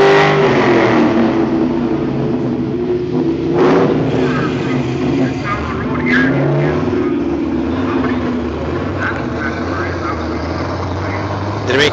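A car accelerates away and its engine roar fades into the distance.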